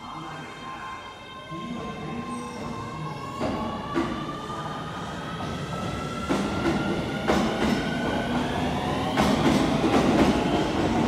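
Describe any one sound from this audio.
An electric train's motor whines and rises in pitch as the train pulls away.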